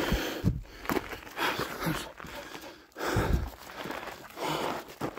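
Footsteps crunch on a gravelly dirt trail.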